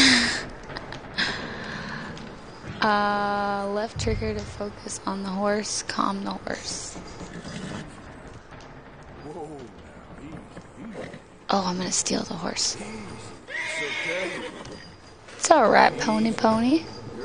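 A young woman talks casually through a microphone.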